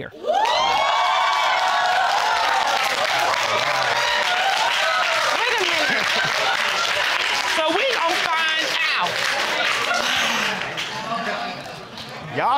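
A studio audience laughs, cheers and whoops loudly.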